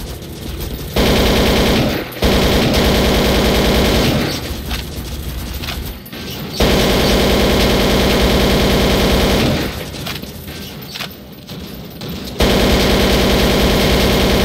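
A rifle fires rapid bursts of automatic gunfire.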